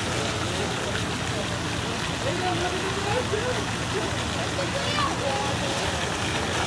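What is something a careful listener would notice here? Water splashes softly as an elephant wades through a pool.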